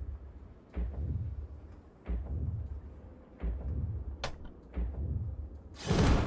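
A deep heartbeat thuds slowly and steadily.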